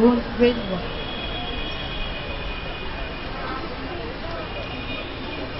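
A young woman speaks into a microphone, heard through loudspeakers outdoors.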